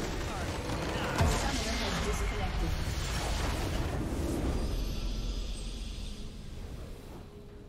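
A structure explodes with a loud rumbling crash.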